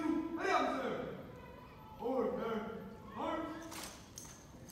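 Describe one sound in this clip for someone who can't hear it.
A man shouts drill commands loudly in a large echoing hall.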